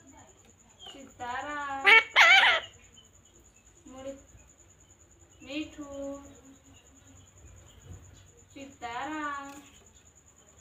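A parrot squawks and chatters in loud, warbling bursts close by.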